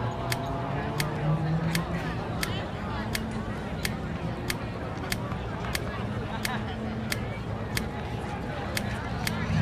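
Short menu clicks tick at a steady pace as the selection steps down a list.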